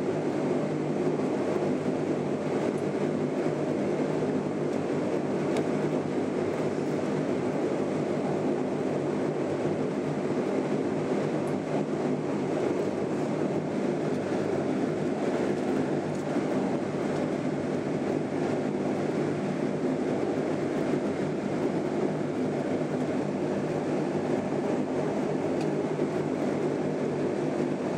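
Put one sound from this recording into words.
A propeller engine drones loudly and steadily, heard from inside an aircraft cabin.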